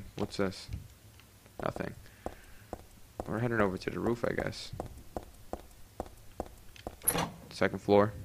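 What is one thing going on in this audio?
Footsteps tap on concrete stairs.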